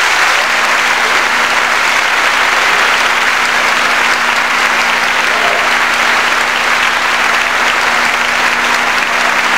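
A large concert band plays in an echoing hall, heard from afar.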